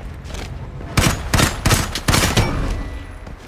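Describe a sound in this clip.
A rifle fires loud shots in short bursts.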